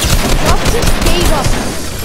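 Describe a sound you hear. Gunshots fire in a quick burst.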